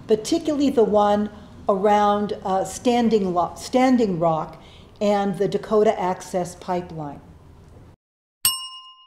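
An elderly woman speaks calmly and earnestly, close by.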